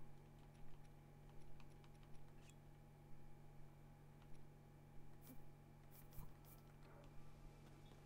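Game menu clicks tick as items are selected.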